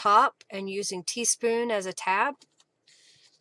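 A woman talks with animation into a microphone.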